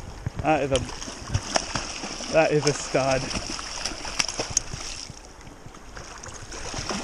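A fish thrashes and splashes in the water.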